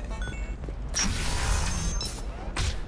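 A sliding door whooshes open.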